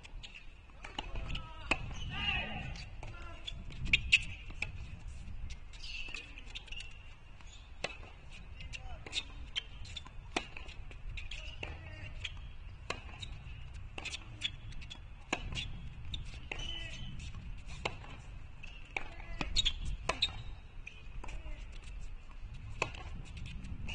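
Tennis shoes squeak and scuff on a hard court.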